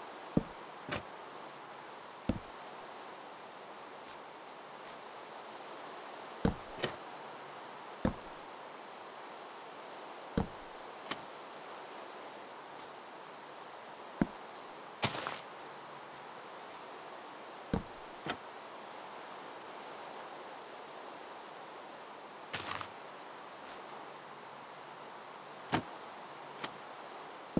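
Blocks thud sharply now and then as they are placed and broken.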